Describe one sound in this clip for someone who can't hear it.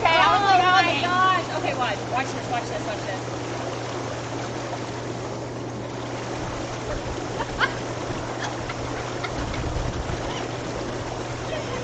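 A pump hums steadily.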